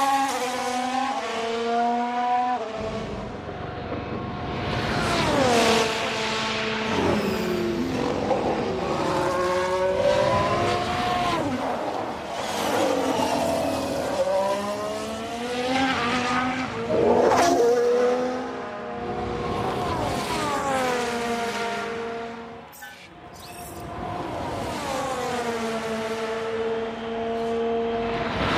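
A racing car engine screams at high revs, rising and falling as it shifts gears and passes by.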